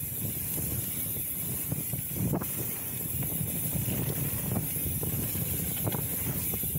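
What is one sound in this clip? A bicycle rattles and clanks over bumps.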